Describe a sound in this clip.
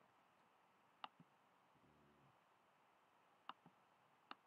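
A game menu button clicks.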